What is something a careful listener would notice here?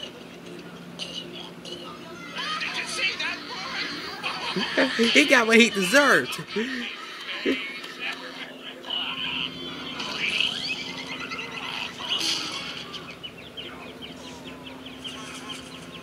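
A cartoon fish gags and wheezes.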